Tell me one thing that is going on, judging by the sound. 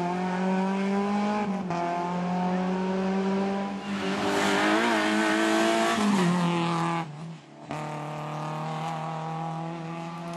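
A rally car engine roars loudly at high revs as the car speeds past.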